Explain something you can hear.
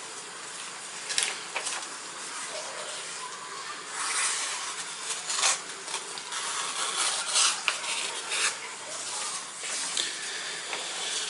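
A knife blade slices through sheets of paper with crisp rustling.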